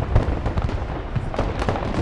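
Gunfire crackles and explosions boom in the distance.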